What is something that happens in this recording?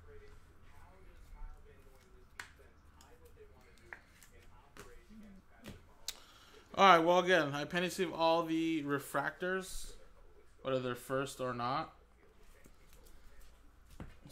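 Trading cards rustle and click as hands shuffle through them.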